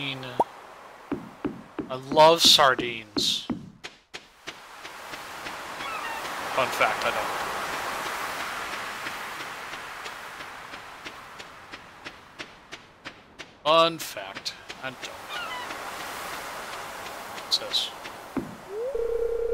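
Footsteps tap steadily on wood and sand.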